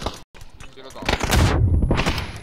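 Gunshots crack in quick succession.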